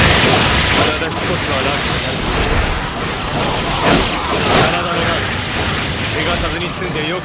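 Fiery blasts burst with loud booms.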